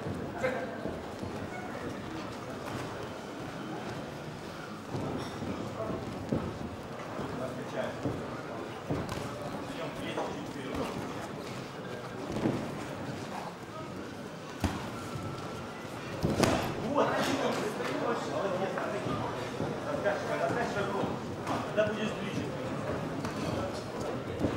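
Boxing gloves thud on bodies in quick punches.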